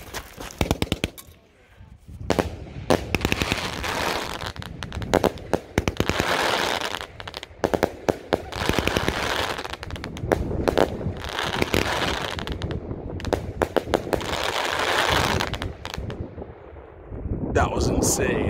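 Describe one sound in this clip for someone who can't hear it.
Firework shells bang loudly.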